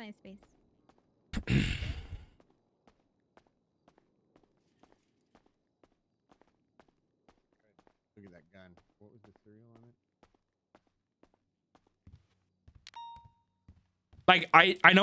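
Footsteps tap steadily on a hard floor.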